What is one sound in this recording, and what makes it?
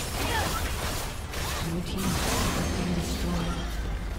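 A turret crumbles as it is destroyed.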